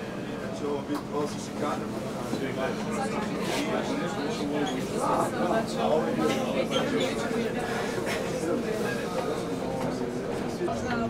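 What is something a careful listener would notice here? A bus engine hums steadily from inside the cab.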